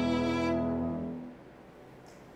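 A violin plays a sustained final note that fades away.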